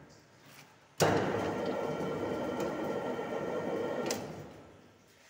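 A heavy mixing machine rumbles and churns steadily.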